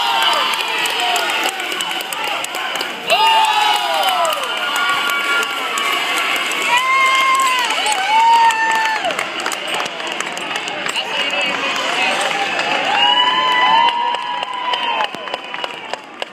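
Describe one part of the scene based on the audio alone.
Children shout loudly with high voices nearby.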